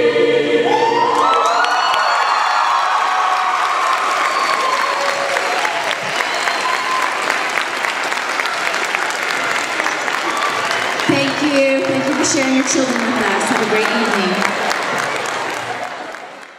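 A crowd of young people cheers and shouts excitedly.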